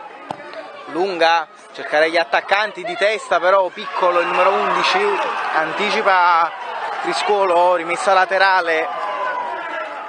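Young children cheer and scream loudly nearby.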